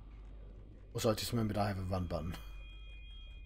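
A man speaks through a microphone in a low voice.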